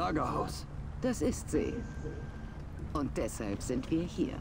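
A woman answers calmly.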